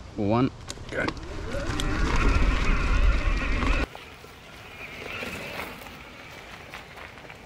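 Bicycle tyres rumble over a bumpy dirt track.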